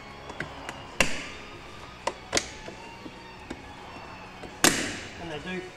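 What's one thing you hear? Plastic door trim clips snap loose with sharp pops.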